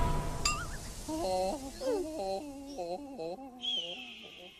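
A cartoon rooster squawks loudly.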